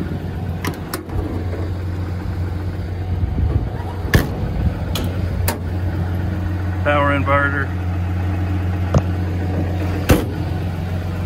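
Metal compartment latches click and doors clunk open.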